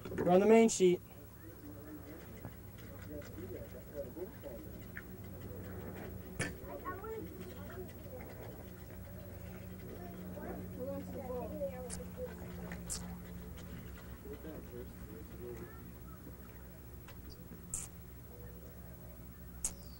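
Young boys talk and call out nearby, outdoors.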